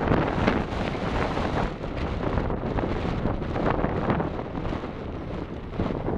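Wind blows across an open field, rumbling on the microphone.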